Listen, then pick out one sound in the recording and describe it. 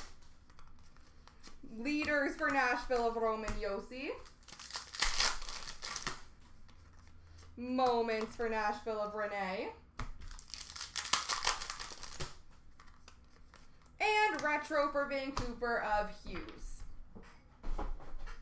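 Trading cards rustle and flick as they are sorted by hand.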